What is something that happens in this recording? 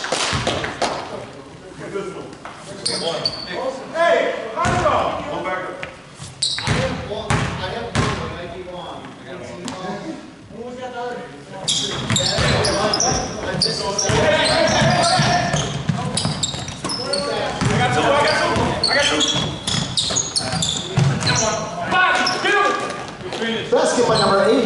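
A basketball bounces on a hard floor in an echoing gym.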